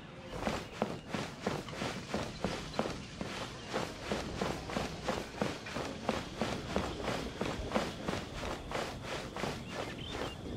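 Quick footsteps run across a hollow wooden floor.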